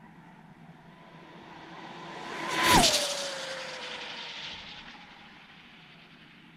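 A remote-control car zooms past with a high whine that drops in pitch and fades away.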